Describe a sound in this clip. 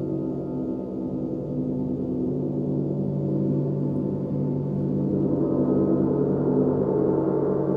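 Large gongs hum and shimmer with a deep, steady, swelling drone.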